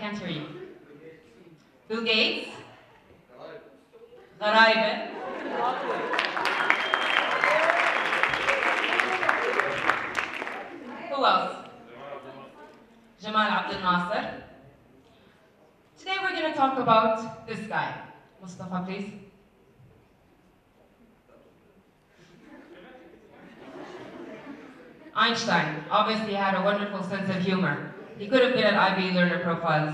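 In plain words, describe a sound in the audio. A man speaks to an audience through a microphone in a large hall.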